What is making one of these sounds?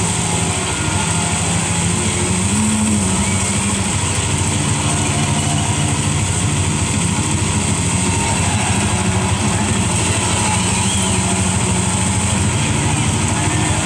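A racing game's car engine hums and revs steadily through a loudspeaker.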